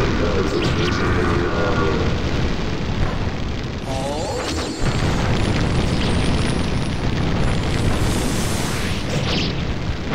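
Flames roar and crackle in bursts.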